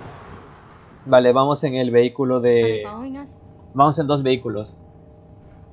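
A young woman asks a worried question close by.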